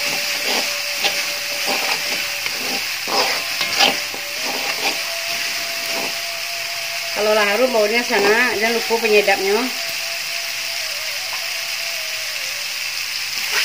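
Chili paste sizzles in hot oil.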